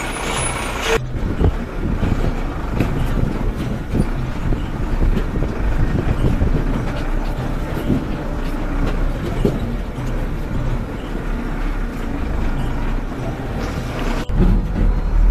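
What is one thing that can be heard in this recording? Tyres crunch over loose rocks and gravel.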